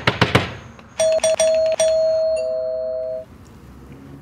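A doorbell rings.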